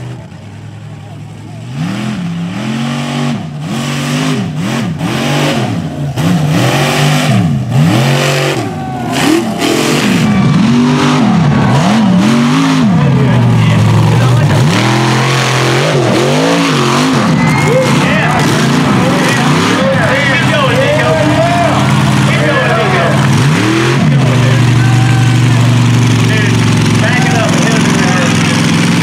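A monster truck engine roars and revs hard, rising and falling.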